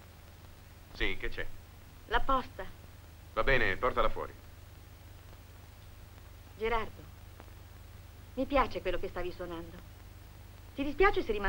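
A young woman speaks cheerfully, close by.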